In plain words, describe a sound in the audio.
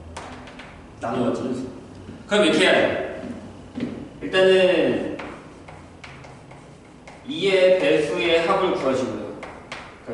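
A young man lectures with animation.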